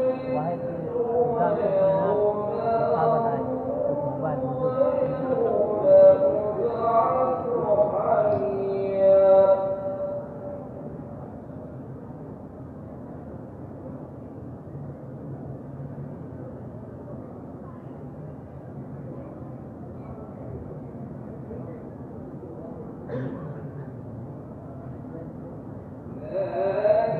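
A crowd murmurs softly in a large echoing space.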